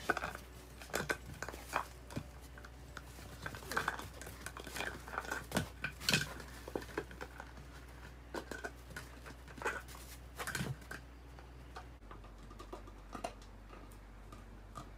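Two small dogs scuffle and play, their paws padding and claws scratching.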